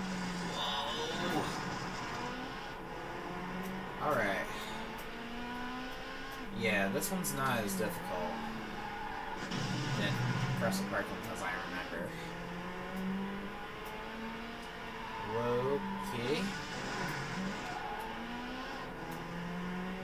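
A racing car engine roars and changes pitch through a loudspeaker.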